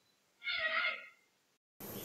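Thick curry bubbles and simmers in a pot.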